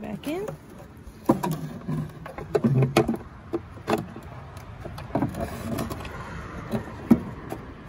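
A plastic lamp housing knocks and rattles as hands handle it.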